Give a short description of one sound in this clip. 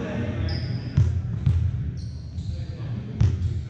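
A volleyball is struck with sharp smacks.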